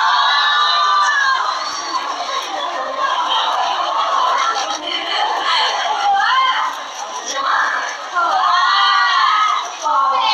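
A young woman speaks into a microphone with animation, heard through loudspeakers.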